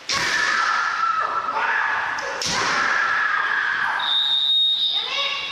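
Fighters shout loud, drawn-out cries that echo through a large hall.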